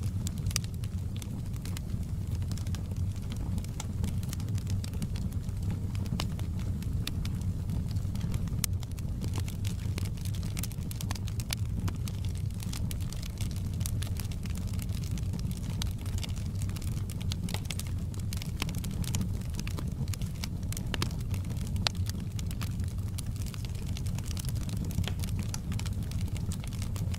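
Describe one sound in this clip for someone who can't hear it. Burning wood crackles and pops.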